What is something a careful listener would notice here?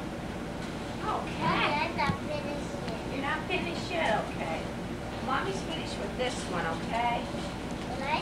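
A young girl talks nearby.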